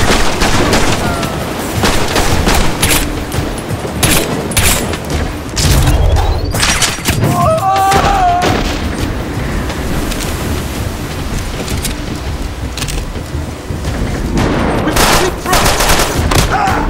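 Gunshots crack in quick, repeated bursts.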